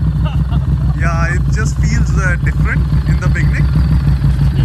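A man speaks nearby over the engine.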